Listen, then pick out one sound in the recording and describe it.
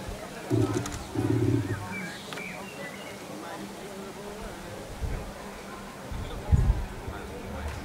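Men talk quietly at a distance outdoors.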